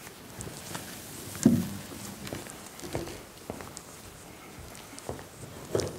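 Footsteps tap across a wooden stage.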